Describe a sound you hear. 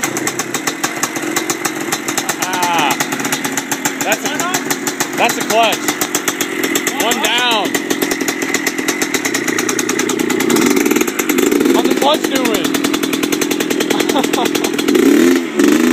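A small two-stroke engine idles with a rapid, sputtering putter close by.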